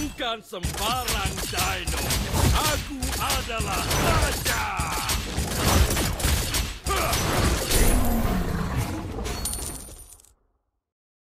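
Video game combat sounds of blows and magic effects crash loudly and rapidly.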